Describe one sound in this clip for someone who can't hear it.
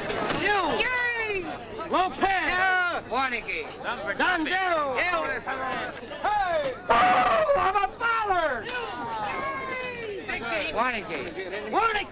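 A crowd of men chatters and calls out excitedly.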